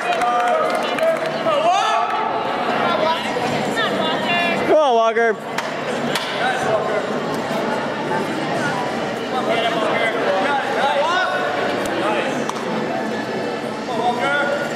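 A crowd of young men and women chatters in a large echoing hall.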